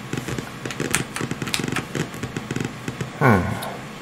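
A computer game plays beeping electronic sounds through a small speaker.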